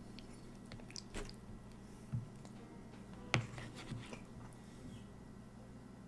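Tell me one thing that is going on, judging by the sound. A fork scrapes and clinks against a plate.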